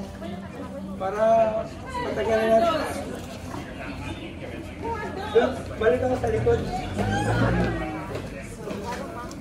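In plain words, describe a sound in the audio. Men and women talk nearby in muffled voices.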